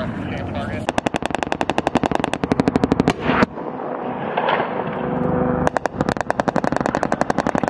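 A machine gun fires rapid bursts nearby.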